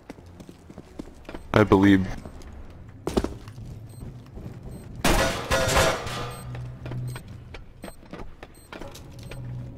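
Footsteps thud on hard floors and metal walkways.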